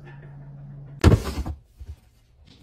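A refrigerator door is pulled open.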